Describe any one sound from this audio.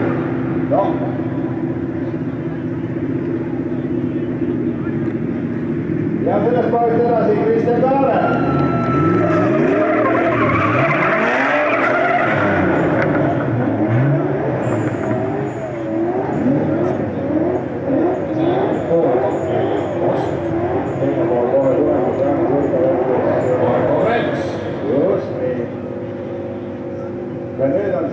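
Car engines roar and rev hard as cars drift.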